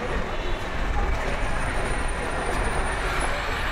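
A bus engine hums as it drives past close by.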